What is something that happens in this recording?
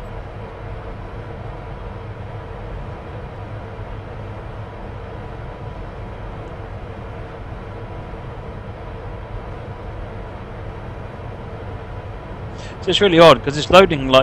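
An electric locomotive hums steadily as it runs along the track.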